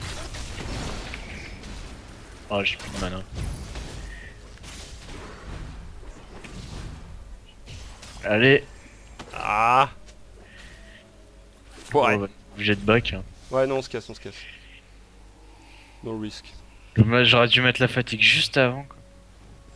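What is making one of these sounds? Magic spells burst and crackle in a video game battle.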